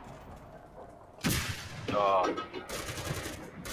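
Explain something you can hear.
A loud explosion booms close by, followed by a rumble.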